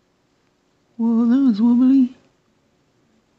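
A woman hums a short, wavering tune close to the microphone.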